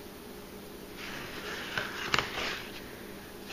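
A hand rubs across a cardboard box.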